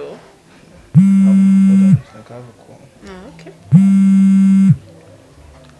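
A phone rings twice, loudly.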